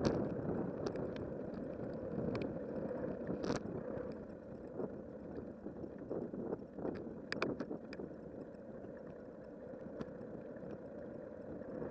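Bicycle tyres hum along a paved path.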